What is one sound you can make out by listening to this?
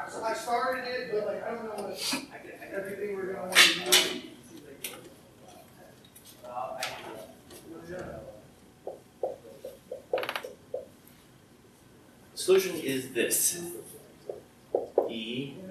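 A woman speaks calmly, lecturing.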